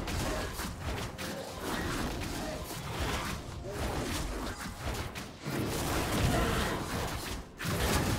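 Video game combat effects clash and thud.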